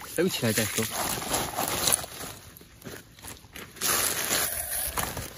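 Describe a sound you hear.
A woven plastic sack rustles and crinkles.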